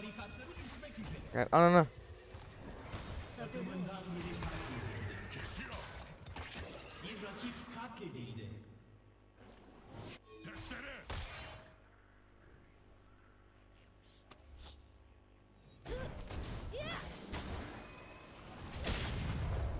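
Video game spell effects whoosh and chime.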